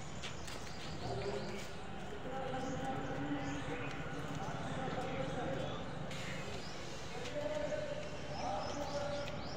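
Several people talk nearby outdoors.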